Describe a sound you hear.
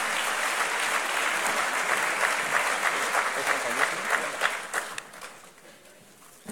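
An audience applauds in a large hall, then the applause fades.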